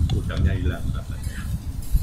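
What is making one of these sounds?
A young woman talks calmly.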